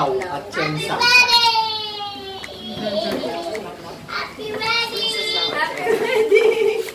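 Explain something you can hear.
A young girl squeals and laughs excitedly nearby.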